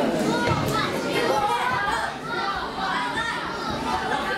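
Bare feet thump and shuffle on a padded mat.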